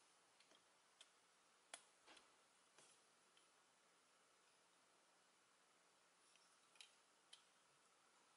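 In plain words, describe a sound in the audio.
Small plastic parts click softly as they are snapped and moved.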